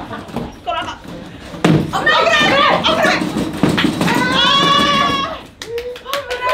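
Several young women shout and laugh excitedly.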